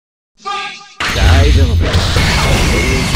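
Sharp slashing hits crackle and boom.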